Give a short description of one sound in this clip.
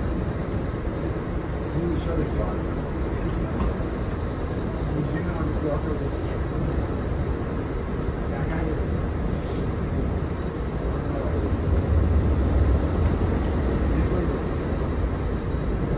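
Wheels clack over rail joints.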